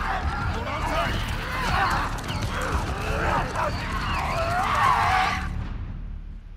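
A man shouts urgently.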